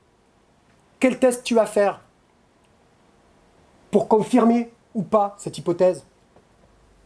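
A middle-aged man speaks calmly in short bursts.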